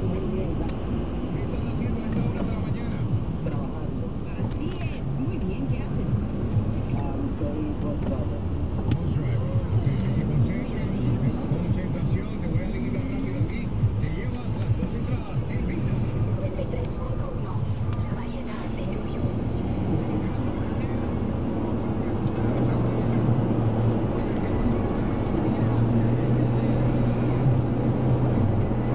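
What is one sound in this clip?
A car engine hums steadily from inside a slowly moving car.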